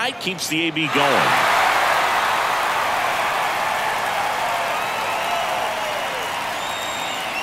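A large crowd cheers loudly.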